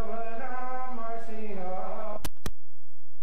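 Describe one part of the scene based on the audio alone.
A man sings slowly through a loudspeaker.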